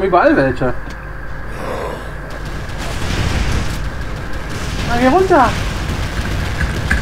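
A fireball roars and explodes with a deep rumble.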